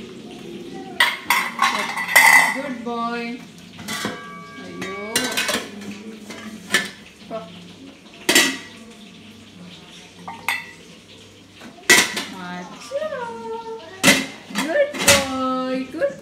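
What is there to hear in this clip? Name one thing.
Metal pans clank and clatter against each other.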